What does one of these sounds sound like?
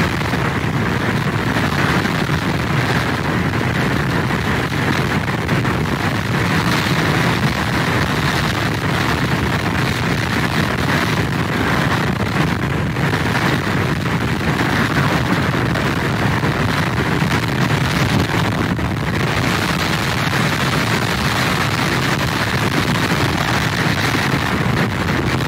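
Heavy surf crashes and roars against wooden pilings.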